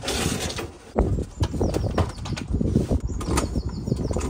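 A lawnmower's wheels rumble and rattle over paving stones.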